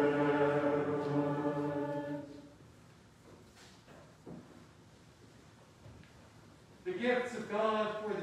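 A man chants a sung prayer in a large echoing room.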